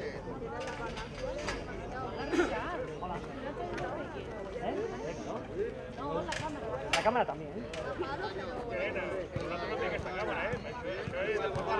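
Young players chatter and shout together in a close huddle outdoors.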